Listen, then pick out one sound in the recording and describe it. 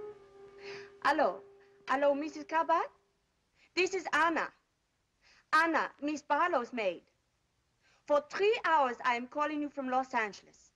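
A woman speaks into a telephone with animation, close by.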